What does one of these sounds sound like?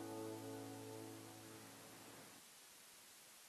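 An acoustic guitar strums a chord that rings and fades.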